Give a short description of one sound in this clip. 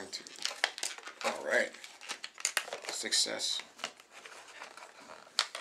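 A plastic package crinkles in a man's hands.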